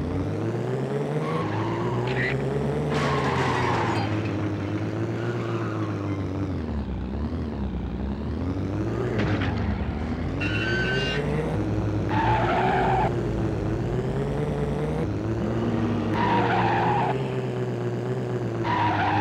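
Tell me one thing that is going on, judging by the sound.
A race car engine hums and revs up and down throughout.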